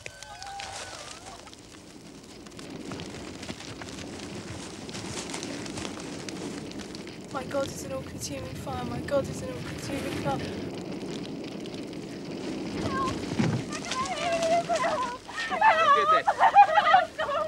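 Fire crackles and roars steadily.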